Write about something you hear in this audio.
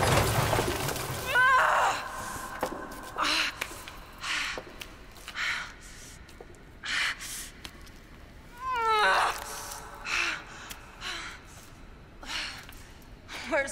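A young woman groans and gasps in pain.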